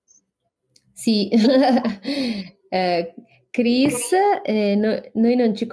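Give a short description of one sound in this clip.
A woman speaks with animation and laughs over an online call.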